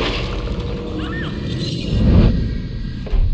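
A woman screams in terror.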